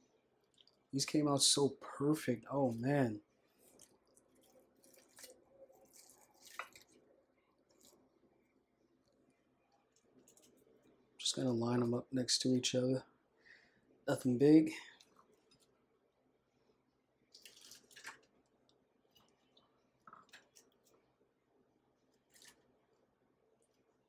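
Crisp fried shrimp crunch and tap softly as they are set down on a plate.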